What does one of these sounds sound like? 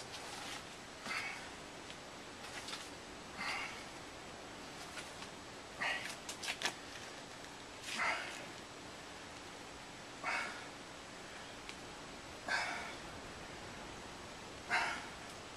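A man breathes out sharply with each pull, at an even pace.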